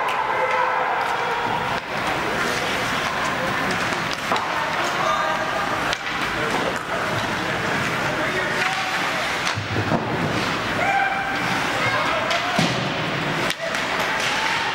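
A crowd of spectators murmurs and calls out in a large echoing arena.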